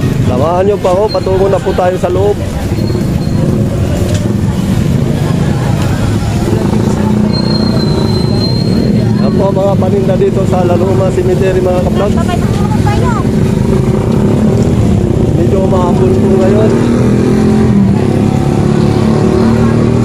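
A crowd of adults chatters outdoors.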